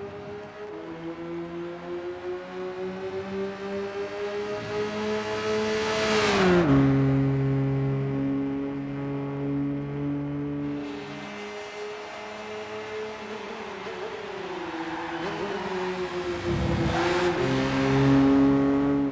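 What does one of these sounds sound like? A sports car engine revs hard and shifts gears.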